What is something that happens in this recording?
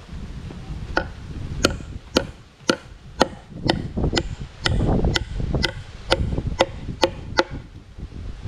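A hammer drives nails into wooden boards.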